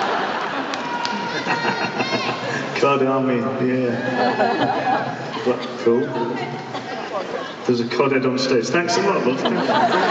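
A man sings into a microphone over loudspeakers in a large hall.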